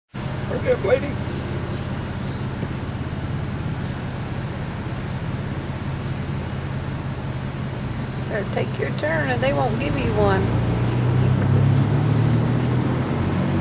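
A car engine hums steadily from inside the car, rising slightly as the car pulls away.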